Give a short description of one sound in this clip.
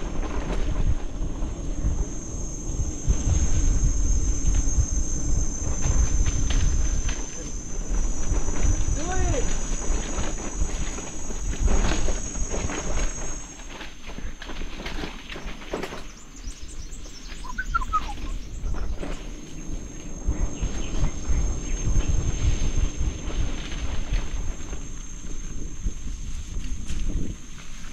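Mountain bike tyres roll and crunch over a dirt trail.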